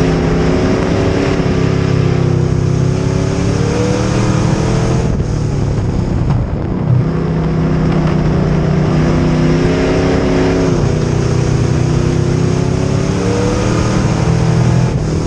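Tyres rumble and scrub on a dirt track.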